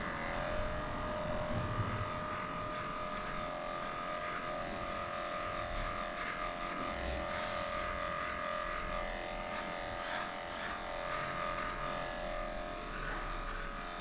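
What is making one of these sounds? Electric clippers buzz steadily, close by.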